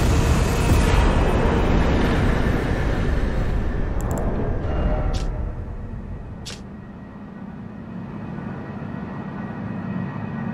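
Strong wind roars loudly, then eases to a softer rush.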